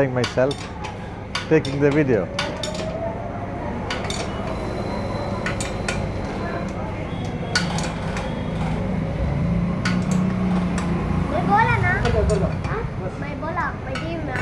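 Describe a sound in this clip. Metal clicks and clanks sharply as a motorcycle part is worked on by hand.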